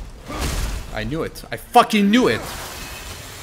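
A young man speaks with animation into a microphone, close by.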